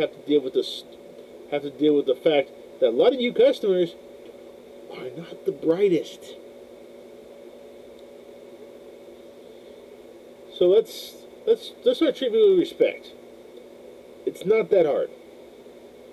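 A man talks with animation close to a microphone, in short bursts with pauses.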